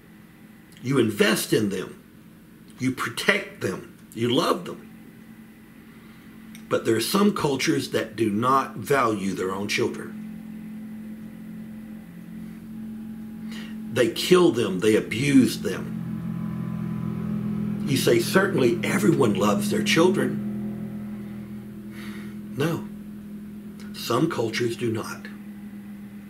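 An older man speaks calmly and closely into a microphone, in bursts with pauses.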